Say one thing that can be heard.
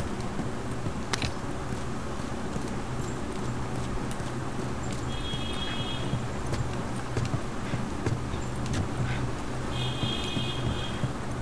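Footsteps thud on a wooden floor and creak up wooden stairs.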